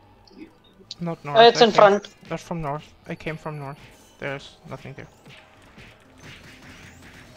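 Game monsters are struck with magic blasts.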